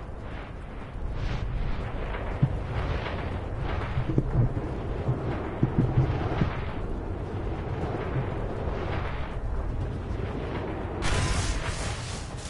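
A crackling energy field hums steadily.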